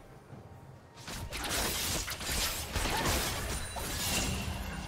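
Game spell and attack sound effects crackle and burst in quick succession.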